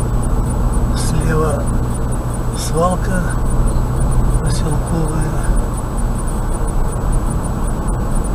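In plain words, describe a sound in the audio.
A car engine hums steadily as tyres roll over the road.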